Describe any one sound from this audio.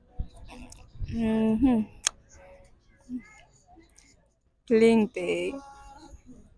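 A young woman speaks close to a microphone, with animation.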